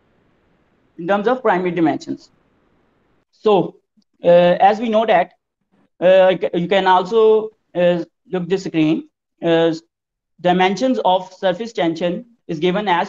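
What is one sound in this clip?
A young man speaks calmly and steadily over an online call.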